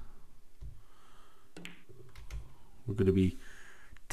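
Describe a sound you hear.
A cue strikes a billiard ball.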